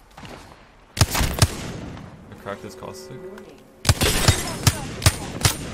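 Gunshots fire in quick bursts, sharp and loud.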